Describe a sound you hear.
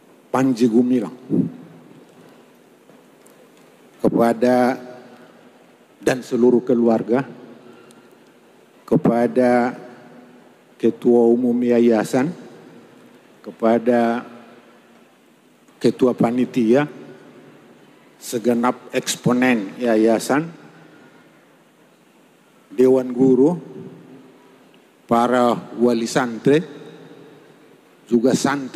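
An elderly man speaks into a microphone in bursts, with pauses between phrases.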